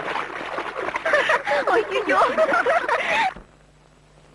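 Young women laugh loudly together nearby.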